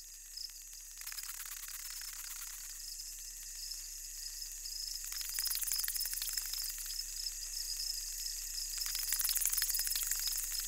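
A swarm of insects buzzes and grows louder.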